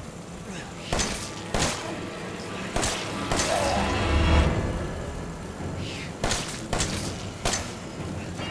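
Pistol shots ring out one at a time.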